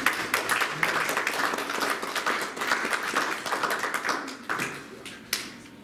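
A young woman sings into a microphone in an echoing hall.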